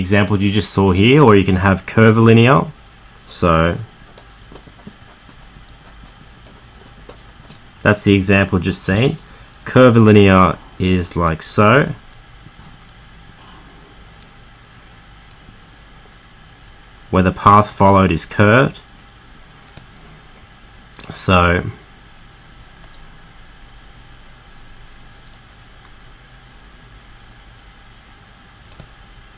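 A marker squeaks and scratches on paper.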